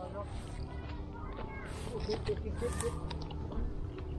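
A man chews and crunches food.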